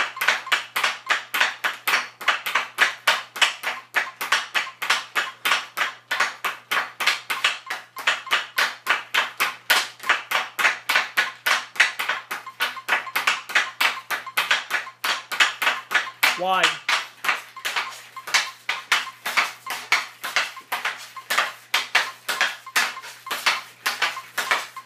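A hockey stick taps a puck back and forth in quick rhythmic clicks on a synthetic ice floor.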